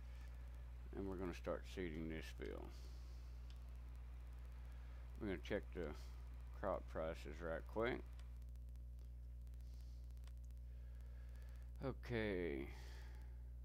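An elderly man speaks calmly and close into a headset microphone, in short bursts.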